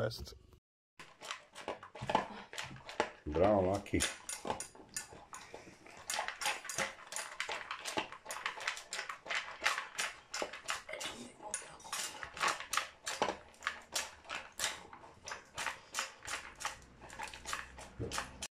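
A dog eats noisily from a metal bowl, chomping and lapping quickly.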